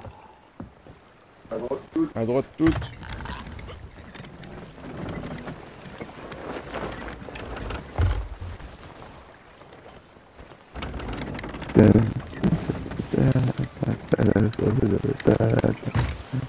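Sea waves wash against a wooden ship's hull.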